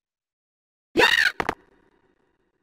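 A short bouncy game sound effect plays.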